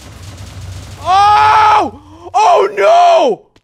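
A young man shouts loudly into a microphone.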